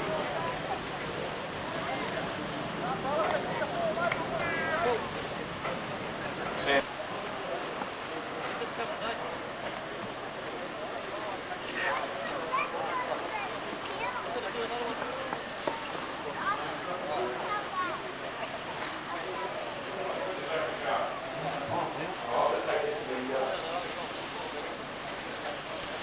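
A crowd murmurs and calls out across an open sports ground.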